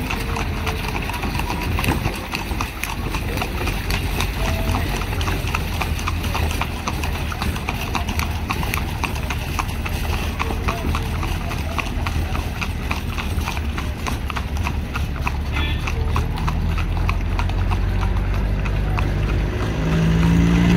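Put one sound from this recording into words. Horse hooves clop at a trot on asphalt.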